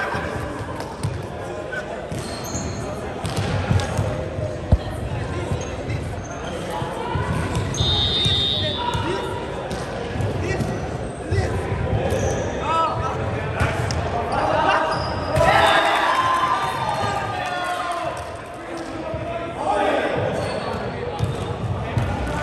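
A volleyball thuds against hands and arms.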